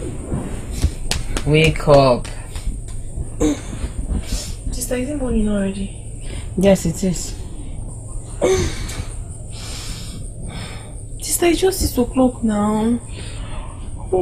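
A young woman moans and cries out in distress close by.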